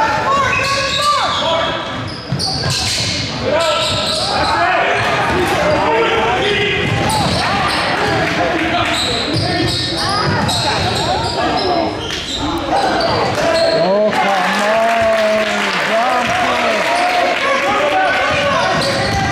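A crowd of spectators chatters and calls out in an echoing hall.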